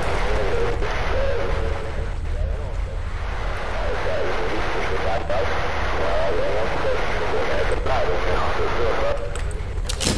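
A handheld radio crackles with static.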